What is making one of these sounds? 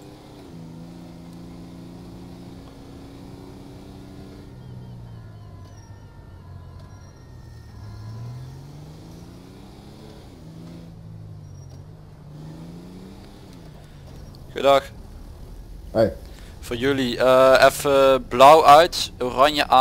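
A van engine hums and revs up and down as it drives.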